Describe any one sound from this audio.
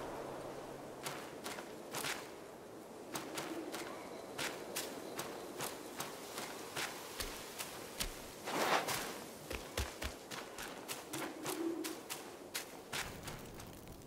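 Footsteps crunch on leaves and dirt.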